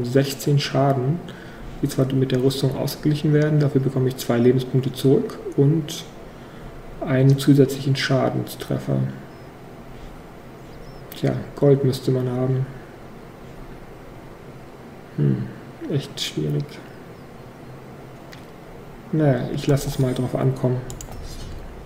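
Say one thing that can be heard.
A man talks calmly and casually into a close microphone.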